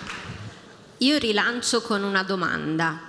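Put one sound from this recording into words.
A woman speaks calmly through a microphone and loudspeakers in a large hall.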